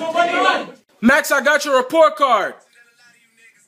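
A young man wails loudly in a high voice.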